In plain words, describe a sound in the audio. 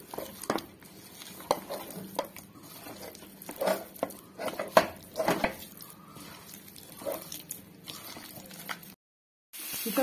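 Hands squelch and slap while mixing wet meat.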